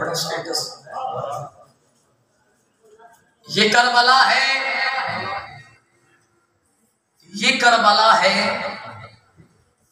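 A young man recites loudly and melodiously into a microphone in an echoing hall.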